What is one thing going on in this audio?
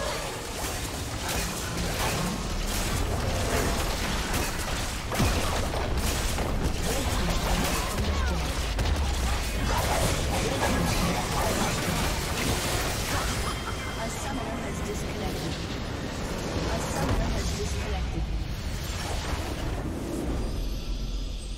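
Video game combat effects clash, zap and burst.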